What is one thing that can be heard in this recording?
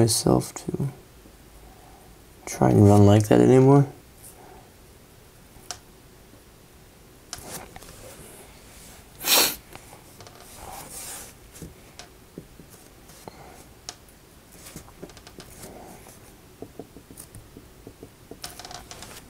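A felt-tip pen taps and scratches softly on paper.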